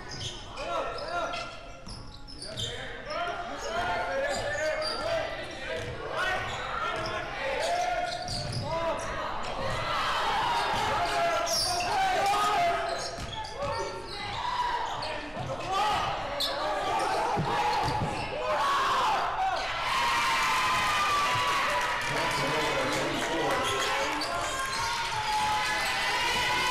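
Spectators talk and call out in a large echoing hall.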